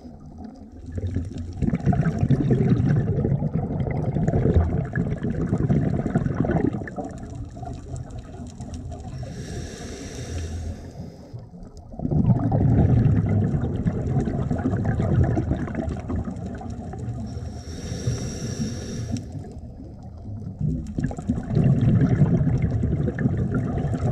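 Water rumbles and swirls in a muffled, underwater hush.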